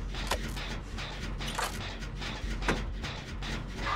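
Metal parts of an engine clank and rattle as it is worked on.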